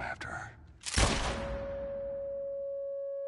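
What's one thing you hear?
A gunshot bangs loudly and rings out.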